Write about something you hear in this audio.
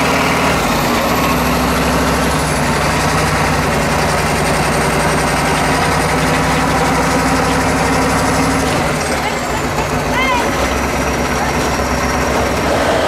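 Tyres crunch and grind over loose rocks.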